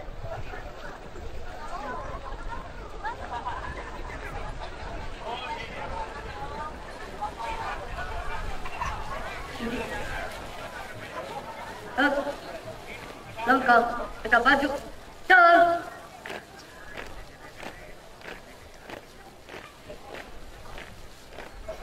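A marching troupe stamps its feet in step on pavement.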